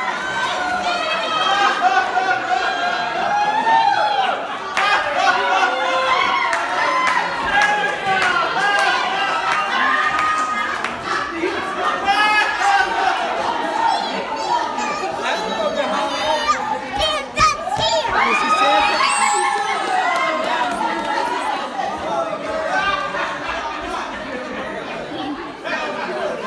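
Several adults talk and cheer with animation nearby.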